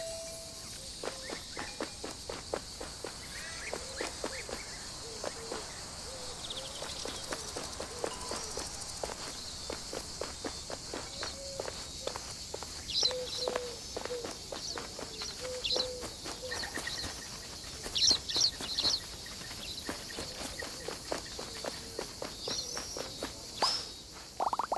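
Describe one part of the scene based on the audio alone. Quick light footsteps patter on hard ground.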